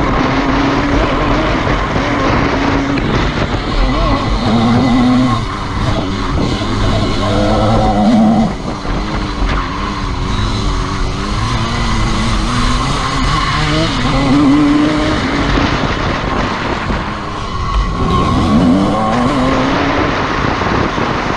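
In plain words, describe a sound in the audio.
A dirt bike engine revs loudly up close, rising and falling in pitch.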